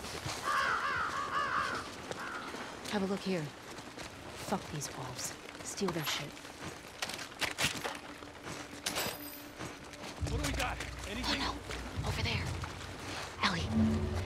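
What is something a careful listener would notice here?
Footsteps splash on wet ground.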